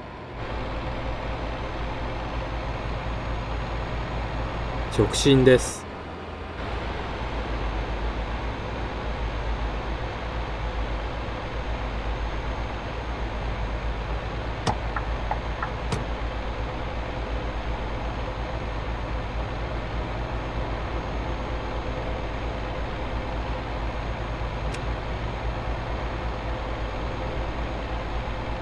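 A diesel truck engine drones from inside the cab while cruising at motorway speed.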